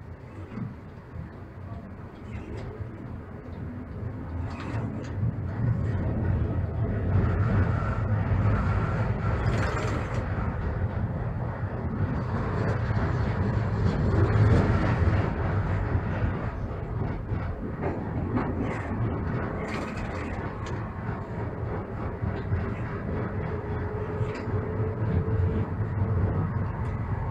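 A tram rumbles and clatters along its rails.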